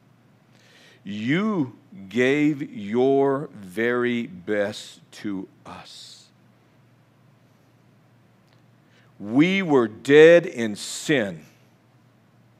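An elderly man speaks calmly and with emphasis into a microphone, pausing between phrases.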